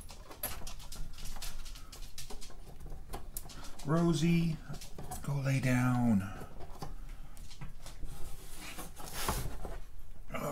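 Hands handle electronic parts with small clicks and rustles.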